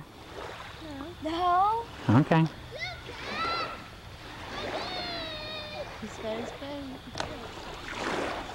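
A woman talks calmly and cheerfully nearby.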